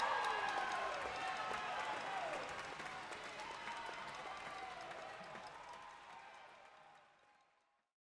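A jazz big band plays live in a large hall, then fades out.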